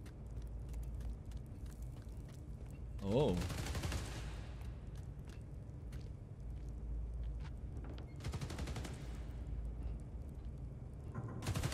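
A man talks quietly into a close microphone.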